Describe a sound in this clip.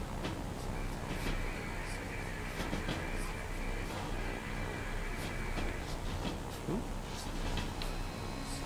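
An electric beam crackles and buzzes steadily nearby.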